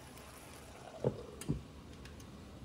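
A glass lid clatters onto a frying pan.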